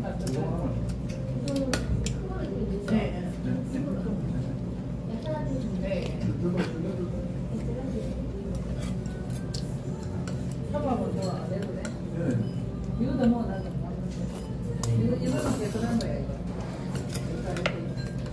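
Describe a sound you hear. Chopsticks click against a bowl.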